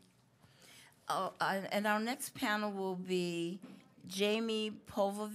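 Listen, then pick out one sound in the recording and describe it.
A woman speaks into a microphone, slowly and clearly.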